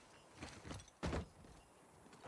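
A heavy body lands with a thud on wooden planks.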